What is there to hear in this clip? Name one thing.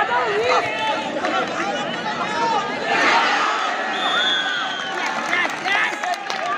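A large crowd cheers and shouts in an indoor hall.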